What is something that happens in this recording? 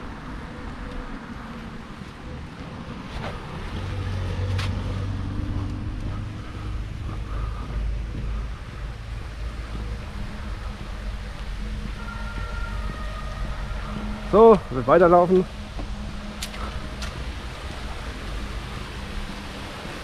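Wind buffets and rumbles outdoors throughout.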